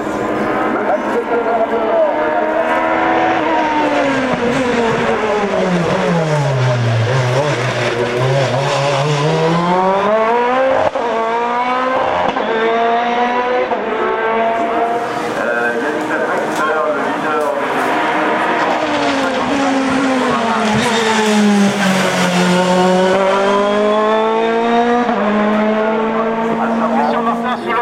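A racing car engine screams and revs up and down through gear changes as it approaches.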